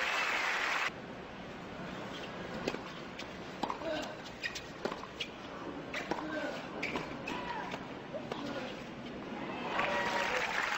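A tennis ball is struck with a racket in sharp pops.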